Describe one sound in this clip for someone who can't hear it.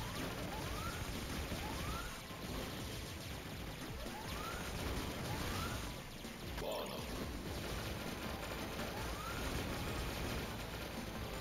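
Rapid video game gunfire rattles steadily.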